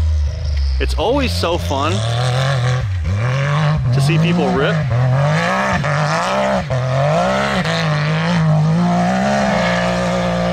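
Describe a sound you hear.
An off-road vehicle's engine revs up and down repeatedly.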